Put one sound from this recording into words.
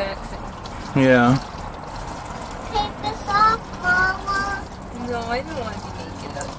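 A child talks and giggles close by.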